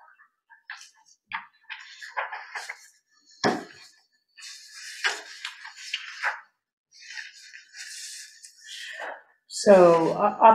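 Paper sheets rustle and crinkle close by.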